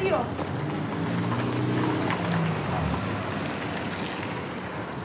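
A car drives past on a wet road.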